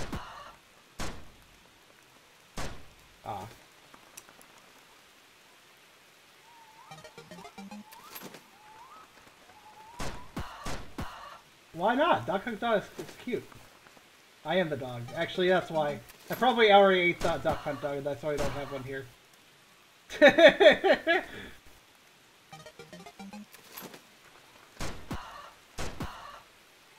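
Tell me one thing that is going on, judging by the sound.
A small gun fires short, sharp shots now and then.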